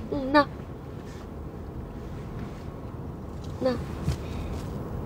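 A car engine hums low and steadily from inside the car.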